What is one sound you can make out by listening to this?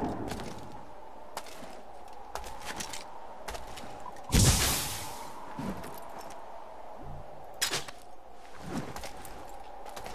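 Footsteps crunch over loose gravel and rubble.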